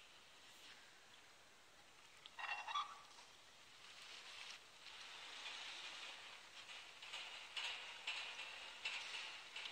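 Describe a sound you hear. A metal valve wheel creaks as it turns.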